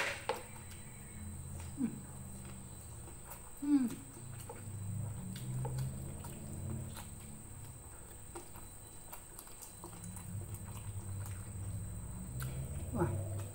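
A woman chews food noisily close to the microphone.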